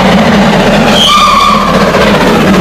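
A steam locomotive whistle blows briefly.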